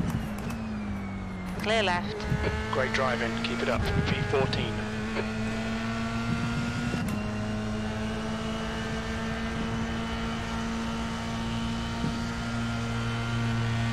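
Engines of other racing cars whine past close by.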